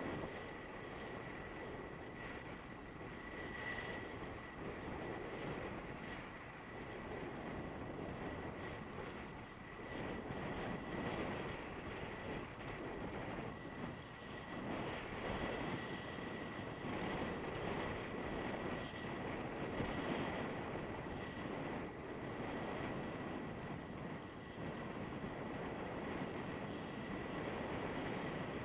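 Wind rushes and buffets loudly against a microphone outdoors.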